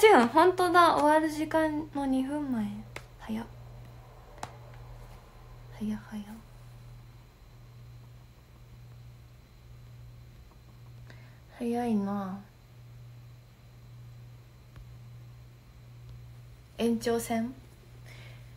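A young woman speaks casually and close up, in short bursts with pauses.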